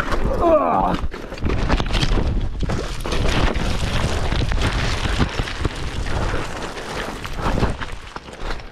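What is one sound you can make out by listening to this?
A bicycle crashes heavily onto stony ground.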